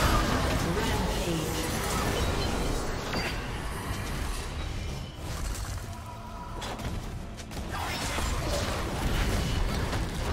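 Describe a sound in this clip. Game spell effects whoosh and crackle in rapid bursts.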